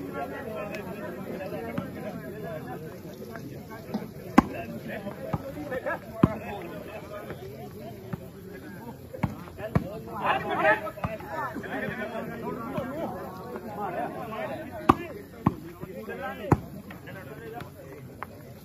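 A crowd of spectators chatters.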